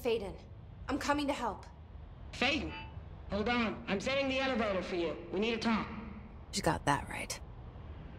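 A young woman speaks closely and urgently.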